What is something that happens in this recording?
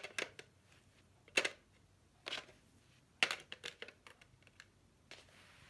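Plastic markers clack against each other and into a plastic tray.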